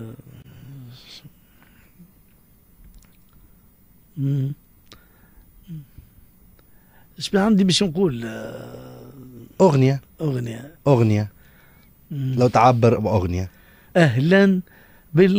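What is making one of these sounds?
A middle-aged man speaks close to a microphone in short bursts, with pauses.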